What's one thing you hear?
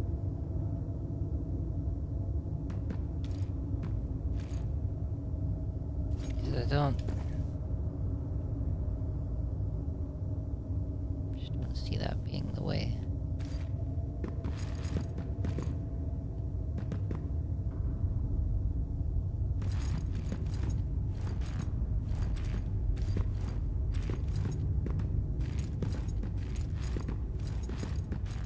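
Heavy armoured footsteps clomp on a stone floor.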